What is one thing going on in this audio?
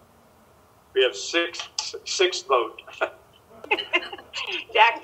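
An older man speaks warmly over an online call.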